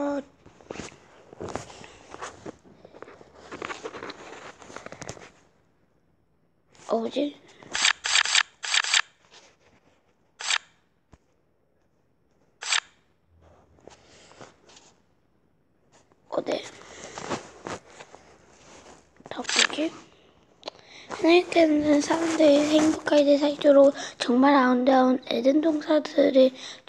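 A young boy reads aloud close to a microphone, heard through an online call.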